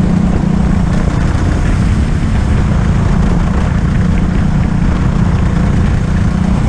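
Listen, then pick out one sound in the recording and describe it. A go-kart engine drones loudly and steadily up close.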